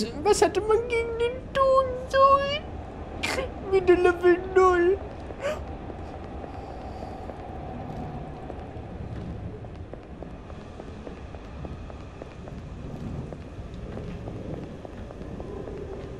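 A train rumbles steadily along.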